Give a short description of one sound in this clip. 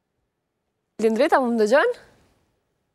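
A young woman speaks briefly and cheerfully into a microphone.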